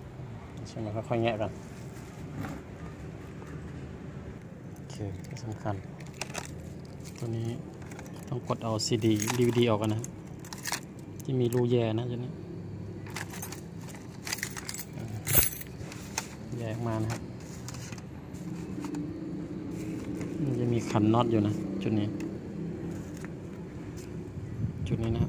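Plastic parts click and knock as a laptop casing is handled.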